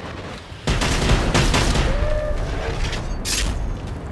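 An explosion booms loudly and rumbles.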